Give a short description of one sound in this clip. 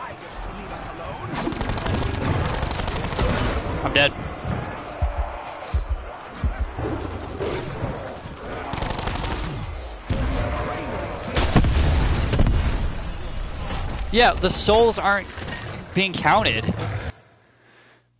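Guns fire in rapid bursts, with loud blasts and crackles.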